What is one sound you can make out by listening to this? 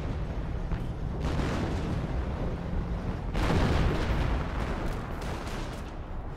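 Explosions boom and crack.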